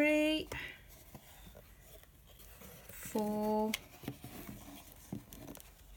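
String scrapes lightly as it is pulled taut.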